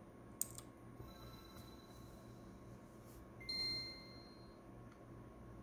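A tiny speaker gives a short, high electronic chime.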